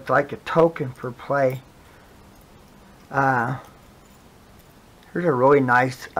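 Coins clink together softly in a hand.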